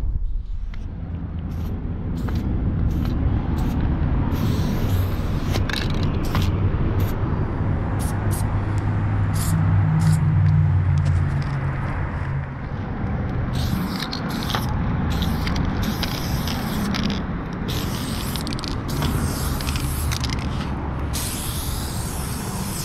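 A spray can hisses in short and long bursts close by.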